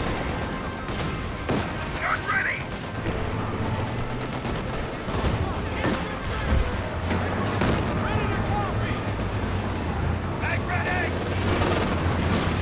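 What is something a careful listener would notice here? Tank engines rumble low and steady.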